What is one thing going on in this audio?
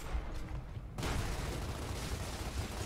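Gunfire bursts out in a quick volley.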